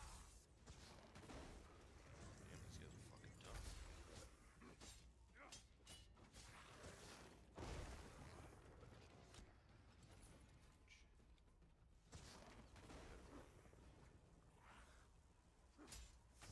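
Weapons clash and strike in quick fights.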